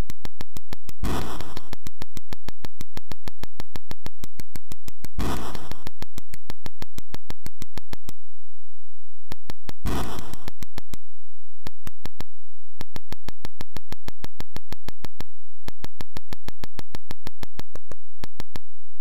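Rapid electronic ticks sound from a retro video game as a character digs.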